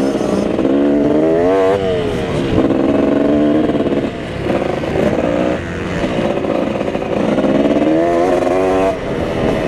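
A dirt bike engine revs hard, rising and falling in pitch as it shifts gears.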